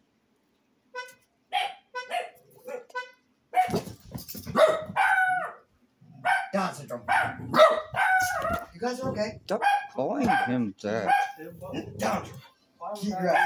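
Dogs growl and bark as they play.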